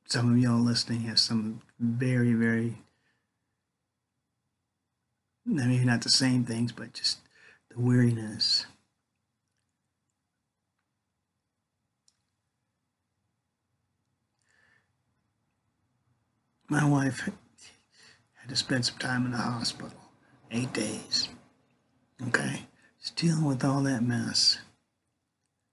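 An older man speaks calmly and closely into a microphone, with long pauses.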